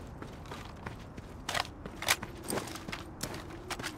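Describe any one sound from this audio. A rifle rattles and clacks as it is handled.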